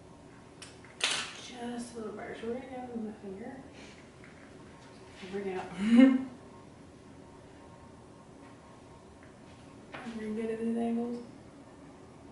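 A young woman talks calmly nearby.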